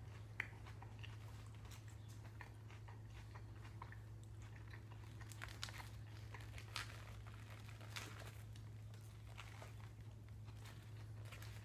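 Paper wrapping crinkles and rustles close by.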